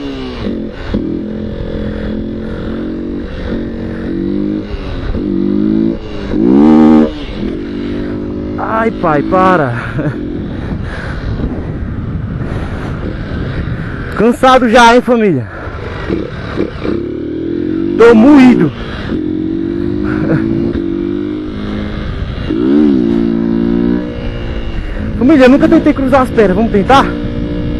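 Wind rushes past a motorcycle at speed.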